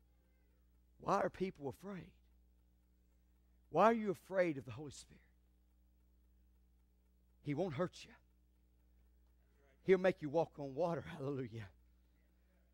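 A man speaks with animation through a microphone, pausing between phrases.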